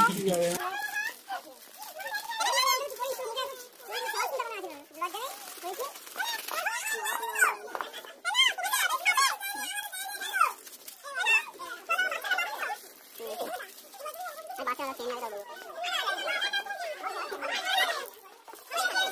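Children and women talk and chatter nearby with animation.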